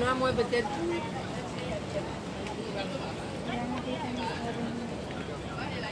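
A woman speaks close by, calmly.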